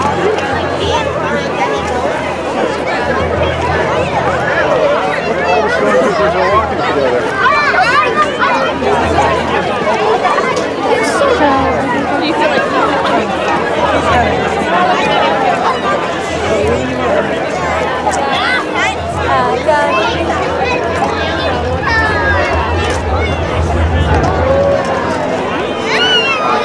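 A large crowd of men, women and children chatters and calls out all around, outdoors.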